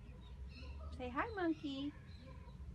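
A young girl exclaims close by.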